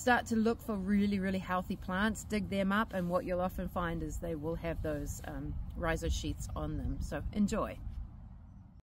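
A middle-aged woman speaks calmly and close to the microphone.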